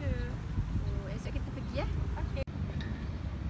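Two young women talk calmly.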